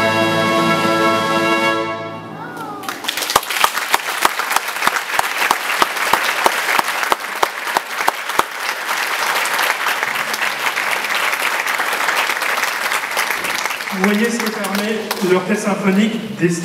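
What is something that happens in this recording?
An orchestra plays loudly in a large echoing hall.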